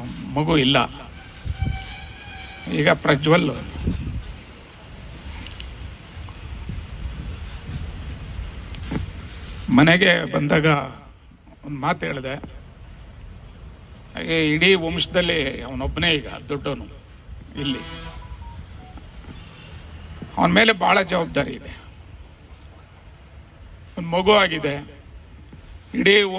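A middle-aged man speaks with animation into a microphone through a loudspeaker, with pauses between phrases.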